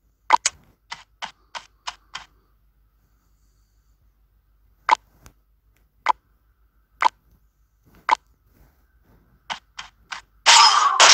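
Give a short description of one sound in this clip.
Short game chimes and clicks sound as skills are picked.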